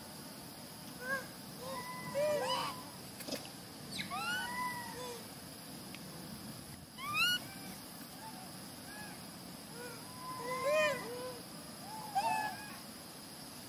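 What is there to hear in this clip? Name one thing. Monkeys give short, high squeaking calls now and then.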